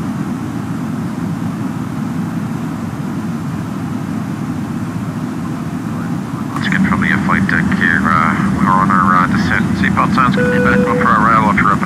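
A jet airliner's engines drone steadily in flight.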